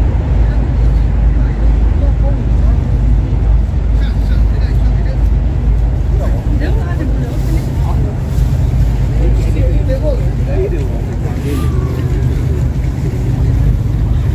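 Adults and children chatter softly nearby.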